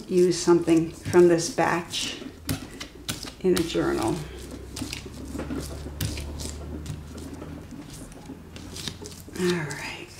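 A rubber roller rolls back and forth over paper.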